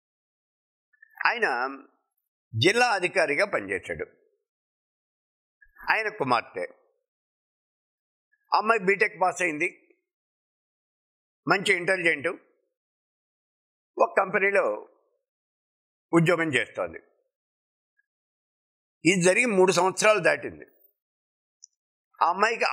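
An elderly man speaks calmly into a close microphone, in short phrases with pauses.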